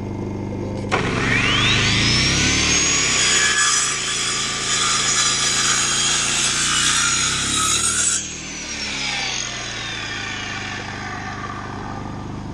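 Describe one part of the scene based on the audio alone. An electric circular saw starts with a rising whine, runs loudly at full speed, then winds down.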